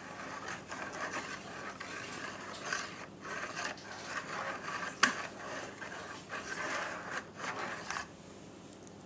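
A wire whisk beats a liquid briskly in a bowl.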